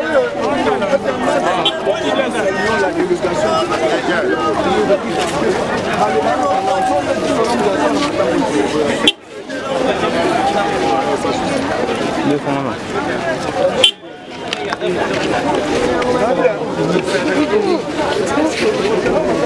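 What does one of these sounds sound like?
A crowd of men and women talk and call out all around, close by.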